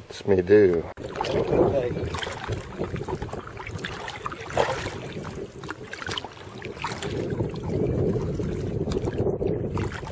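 A kayak paddle splashes in the water.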